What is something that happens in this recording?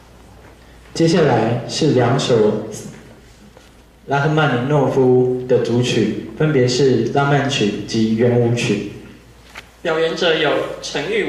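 A young man speaks into a microphone, heard through loudspeakers in a large echoing hall.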